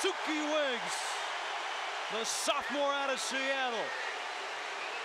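A crowd of fans whoops and yells loudly.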